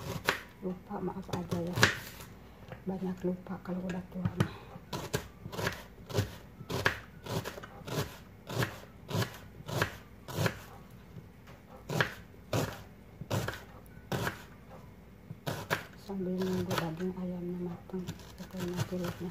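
A knife chops through an onion onto a plastic board with sharp, regular taps.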